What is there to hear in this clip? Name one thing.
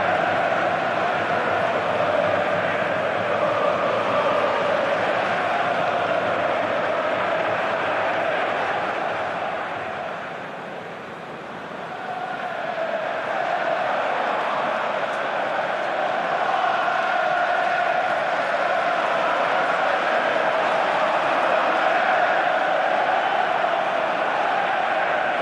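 A large stadium crowd roars and chants steadily, dipping briefly before swelling again.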